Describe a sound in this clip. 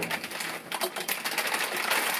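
Crisps rattle as they pour into a bowl.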